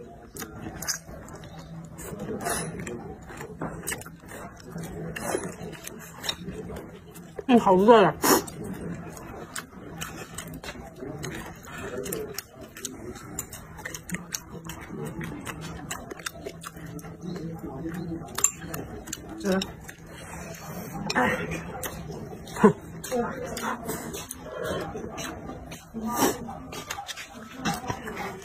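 A young woman chews and smacks her lips, close by.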